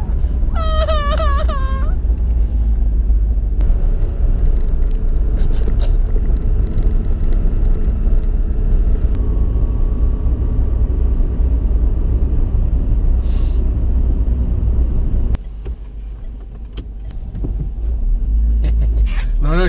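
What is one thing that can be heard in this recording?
A car engine and tyres rumble steadily, heard from inside the car.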